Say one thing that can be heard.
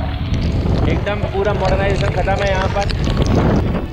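A man speaks with animation close by, over the wind.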